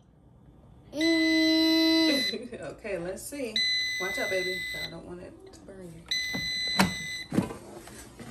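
An air fryer beeps with steady electronic tones.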